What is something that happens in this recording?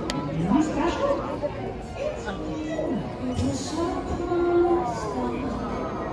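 A large crowd murmurs and chatters outdoors.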